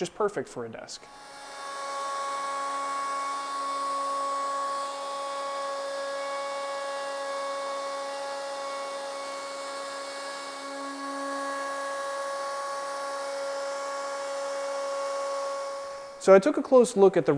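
A router whines steadily as it cuts wood.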